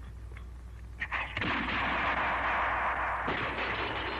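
Glass bottles crash and shatter.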